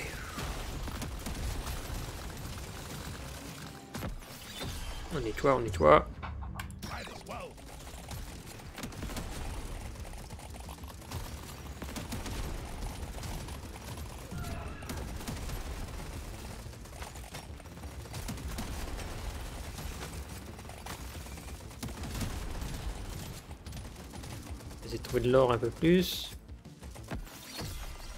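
Game gunfire and explosions rattle steadily.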